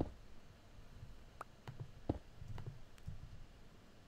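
A soft thud sounds as a block is placed.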